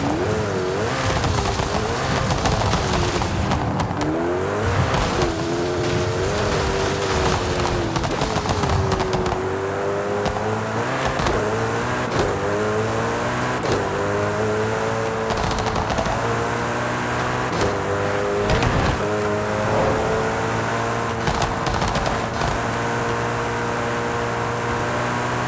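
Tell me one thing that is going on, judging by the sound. A car engine roars and revs higher through the gears, with short drops at each gear change.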